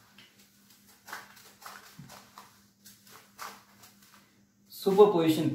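A cloth rubs and wipes across a whiteboard.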